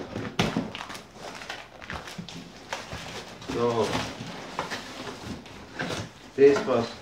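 Cardboard rustles, scrapes and crackles as it is pulled open by hand.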